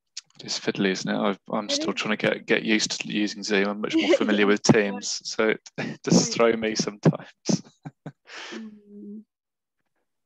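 A young man talks with animation and laughs, close to a headset microphone.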